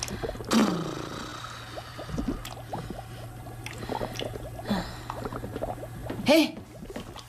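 A ladle scrapes and knocks inside a large metal pot.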